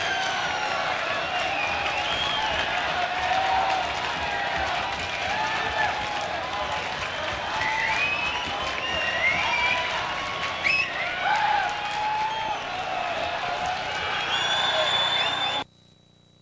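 A large crowd cheers and screams loudly in a big hall.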